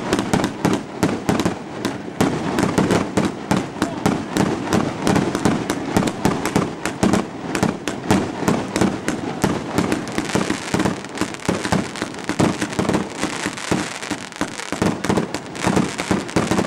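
Fireworks hiss and whoosh as they shoot up.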